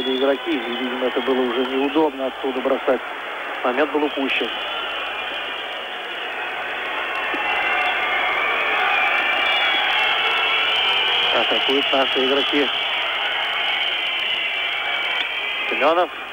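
A crowd murmurs and roars in a large arena.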